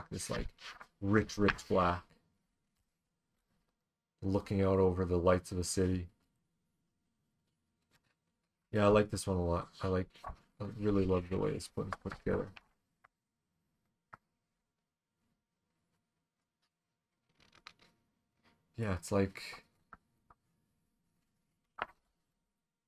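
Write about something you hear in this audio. A page of a large magazine rustles as it is turned.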